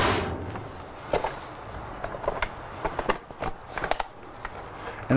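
A blender lid clicks into place.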